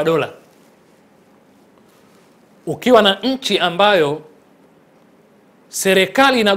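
A young man speaks calmly and clearly into a close microphone, in short phrases with pauses.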